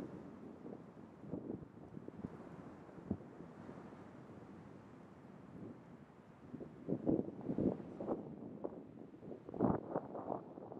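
An elephant seal breathes heavily and gurgles close by.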